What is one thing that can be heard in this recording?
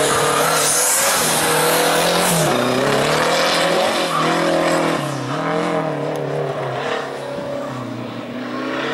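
A small car engine revs hard up and down, close by.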